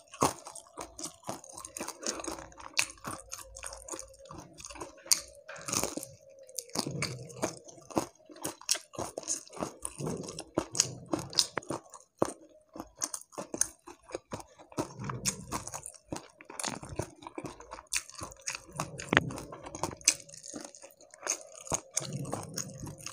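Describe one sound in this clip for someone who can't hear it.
A young man chews crunchy fried fish loudly and close up.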